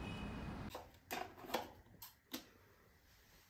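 A key card clicks into a door slot.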